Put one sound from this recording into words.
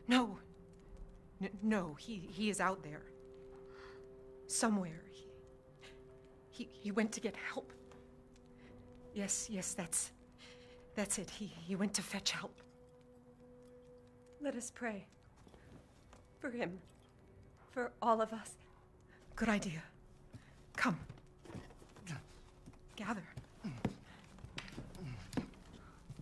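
A woman speaks nervously and haltingly, up close.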